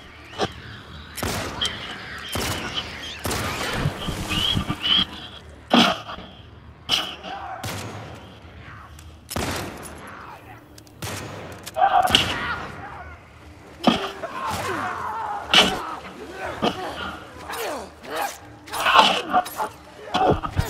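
A creature shrieks and snarls close by.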